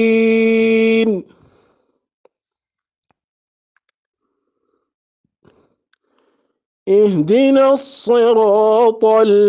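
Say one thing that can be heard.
A young man chants a recitation in a slow, drawn-out melodic voice, close to a microphone.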